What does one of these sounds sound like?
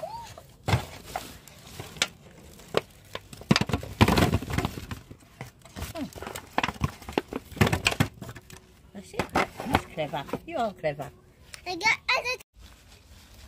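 Tomatoes tumble and knock into a metal tray.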